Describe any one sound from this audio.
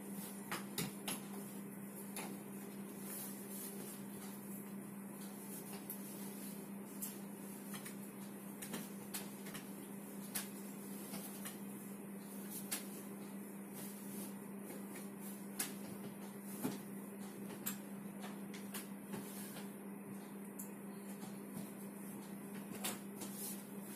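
Fabric rustles as a bedsheet is smoothed and tucked.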